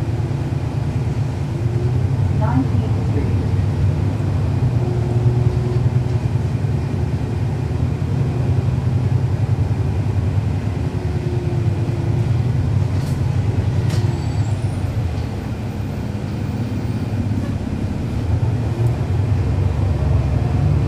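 A bus engine idles with a low, steady rumble nearby.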